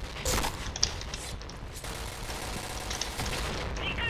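A rifle clacks as it is readied.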